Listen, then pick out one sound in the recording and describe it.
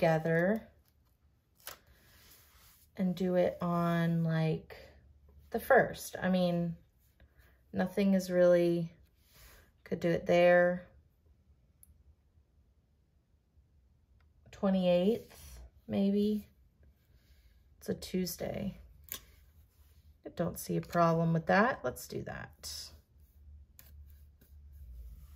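Stickers peel softly off a paper sheet.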